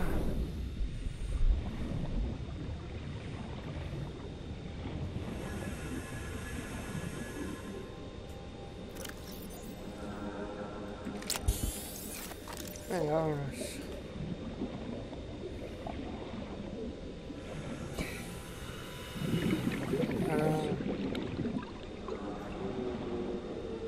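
Water rumbles and swishes steadily as a diver swims underwater.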